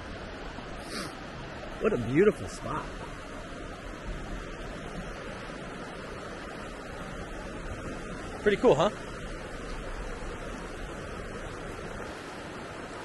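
A river rushes steadily over stones.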